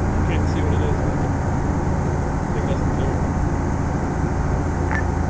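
A heavy vehicle engine rumbles steadily from inside the cab.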